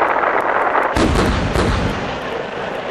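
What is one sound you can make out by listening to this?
Cannons fire with a deep boom.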